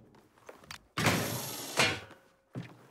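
A metal hatch scrapes and hisses open.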